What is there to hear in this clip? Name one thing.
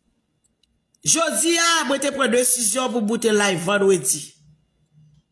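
A woman speaks with animation.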